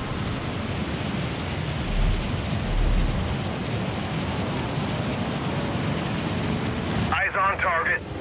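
Wind rushes loudly past during a fast glide through the air.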